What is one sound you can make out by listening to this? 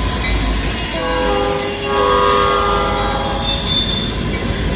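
A train horn blares.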